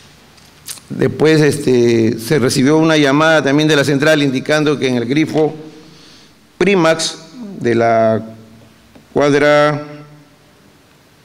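A man speaks with animation through a loudspeaker in an echoing hall.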